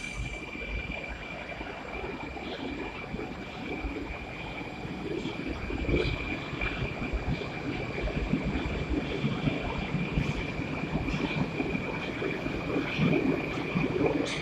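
A train rumbles louder as it picks up speed.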